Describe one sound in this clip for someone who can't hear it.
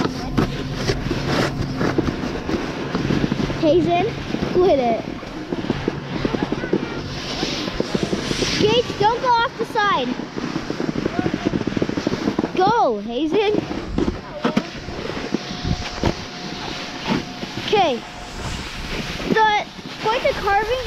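A snowboard scrapes and hisses over crusty snow.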